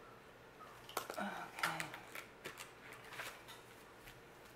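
A plastic pouch rustles as it is handled.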